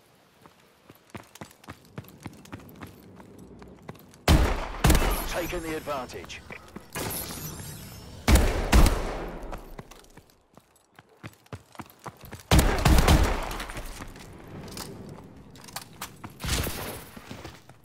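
Footsteps patter on hard ground.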